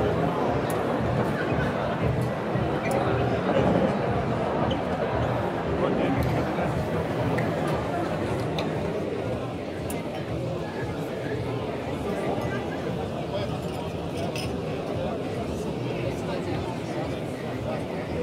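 An espresso machine hisses as coffee is pulled.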